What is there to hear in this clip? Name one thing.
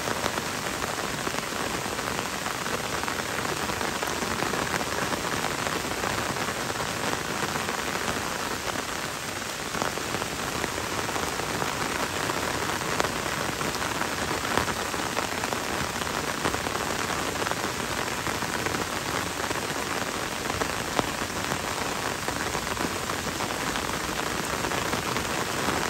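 Gentle rain patters on leaves and a wet road in a forest.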